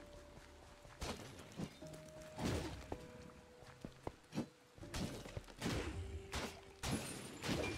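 A sword swishes and strikes in quick blows.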